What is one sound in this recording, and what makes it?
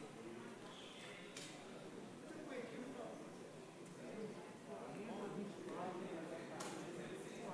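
A man speaks calmly through a microphone in a large, echoing hall.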